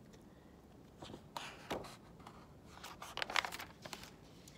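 Book pages rustle and flap as they turn.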